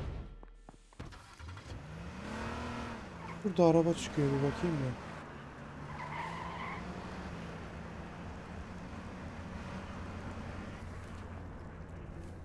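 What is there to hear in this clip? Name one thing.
A car engine hums steadily as the car drives.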